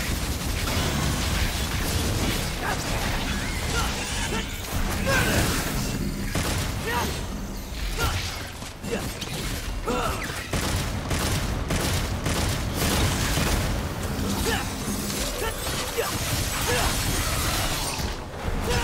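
Swords clash and slash in rapid, heavy strikes.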